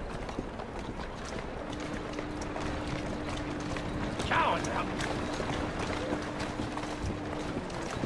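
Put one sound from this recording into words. Carriage wheels rattle over cobblestones.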